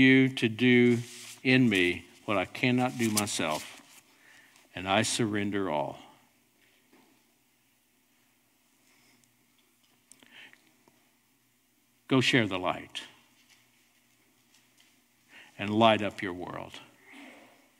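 A middle-aged man speaks calmly into a microphone, with pauses, in a reverberant hall.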